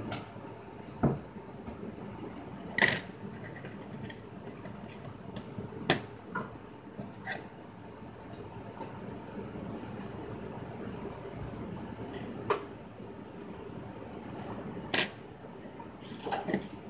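Metal pendants clink and tap against a hard tabletop.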